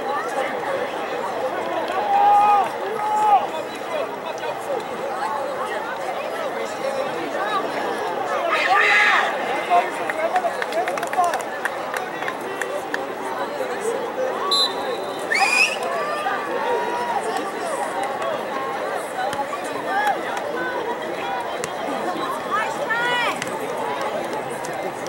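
A crowd of spectators murmurs and calls out across an open field.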